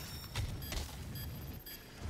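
A monster growls up close.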